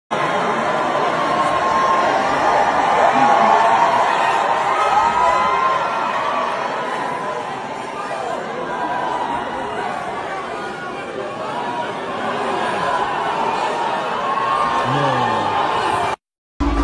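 A singer's voice sounds through loudspeakers.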